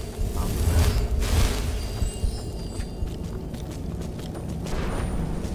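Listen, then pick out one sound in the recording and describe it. Footsteps crunch over rough ground.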